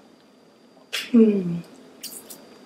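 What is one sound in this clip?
A young woman hums in pleasure.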